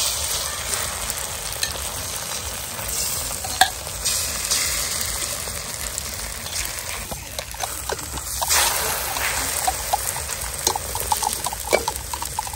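A metal spatula scrapes against a pan.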